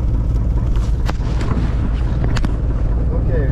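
Fabric rustles and brushes close by.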